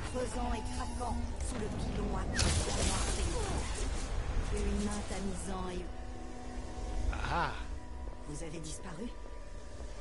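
A young woman talks into a close headset microphone.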